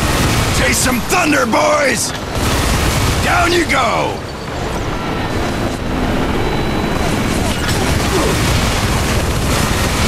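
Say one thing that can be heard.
A heavy gun fires in rapid bursts.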